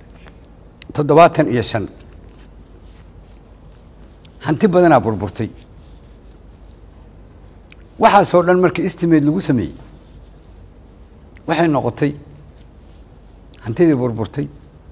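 An elderly man speaks into a microphone in short, deliberate bursts with pauses between them.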